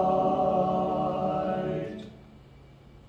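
A men's choir sings in close harmony in an echoing hall and holds a final chord.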